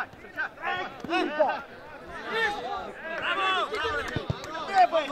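Men shout and call out excitedly across an open field.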